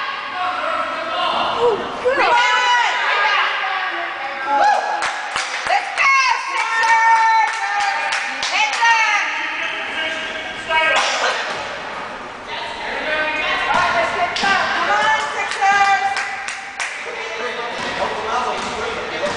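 Young children shout and call out during a game.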